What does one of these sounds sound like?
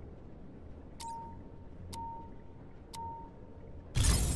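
A countdown beeps once a second, three times.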